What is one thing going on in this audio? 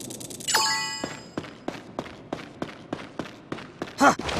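Footsteps tap quickly and evenly on a hard floor.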